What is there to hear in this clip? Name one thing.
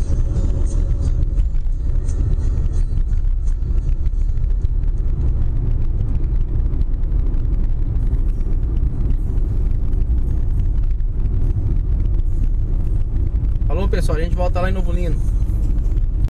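Tyres rumble steadily on the road, heard from inside a moving car.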